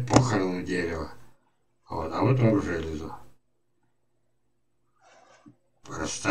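An elderly man speaks calmly through an online call microphone.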